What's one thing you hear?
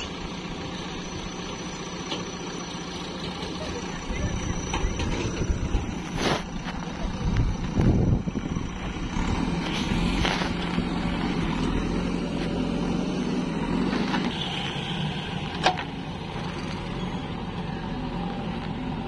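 A diesel engine rumbles steadily nearby.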